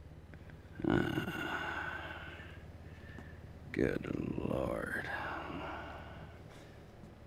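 A man groans and sighs close by.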